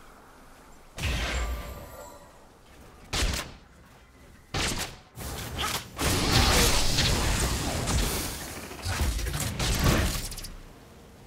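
Game characters clash in battle with spell effects and hits.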